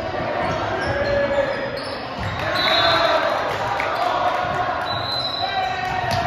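A volleyball is struck with a hard smack.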